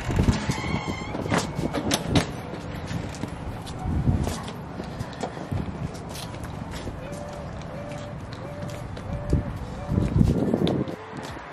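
Footsteps walk across pavement close by.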